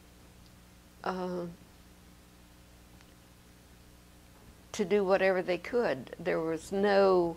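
An elderly woman speaks calmly and closely into a microphone, with pauses.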